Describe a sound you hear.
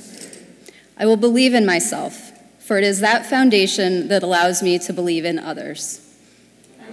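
A woman speaks clearly into a microphone over a loudspeaker in a large echoing hall.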